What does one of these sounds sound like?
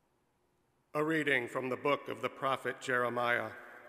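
A middle-aged man reads out calmly through a microphone.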